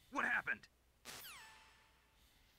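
A radio transmission cuts off with a falling electronic sweep.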